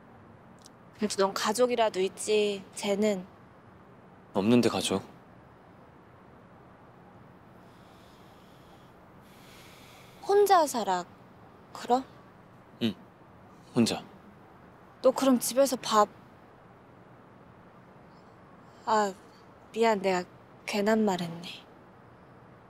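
A young woman talks calmly nearby.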